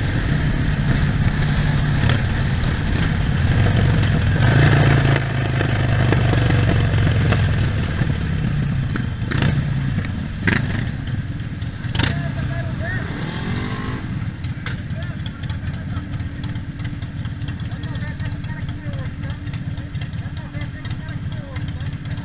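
A Harley-Davidson Sportster V-twin motorcycle rumbles as it cruises along a road.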